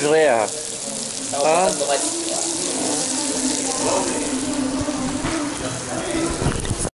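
Food sizzles loudly on a hot iron plate.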